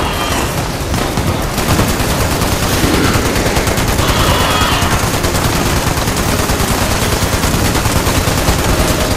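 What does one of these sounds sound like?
A rapid-firing gun in a video game shoots in long bursts.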